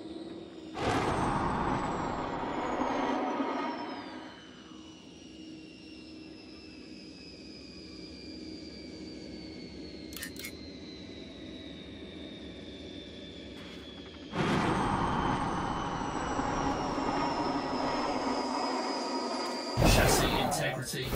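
Thrusters roar loudly in bursts.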